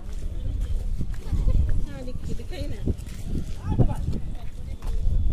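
Young women chat nearby.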